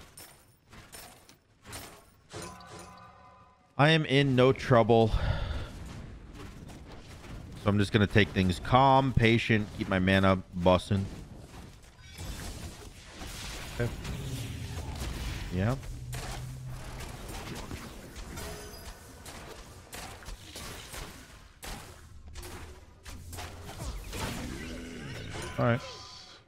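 Magic blasts and hits sound in a fast fight.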